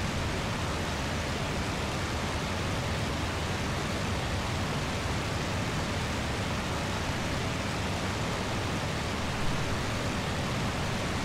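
A propeller aircraft engine roars steadily.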